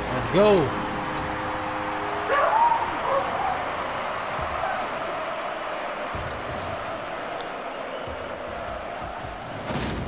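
A crowd cheers loudly in a large arena.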